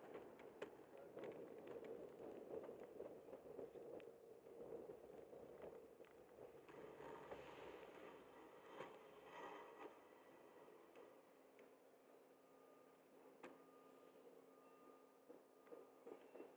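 A car drives slowly just ahead.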